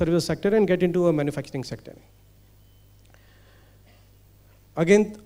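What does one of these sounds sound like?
A man speaks into a microphone in a large hall, pausing between phrases.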